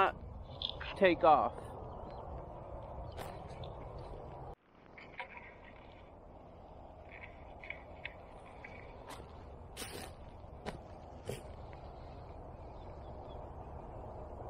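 Footsteps crunch on dry wood chips.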